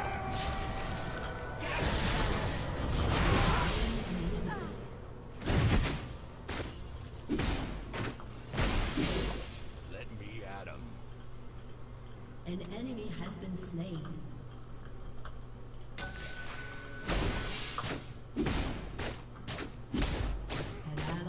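Video game spell blasts and weapon hits burst out in quick bursts.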